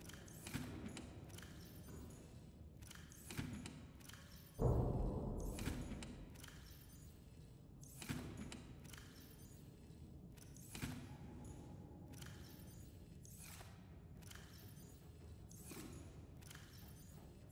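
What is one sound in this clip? Short electronic clicks and whooshes sound again and again.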